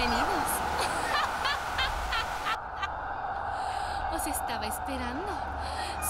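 A young woman screams and laughs wildly close by.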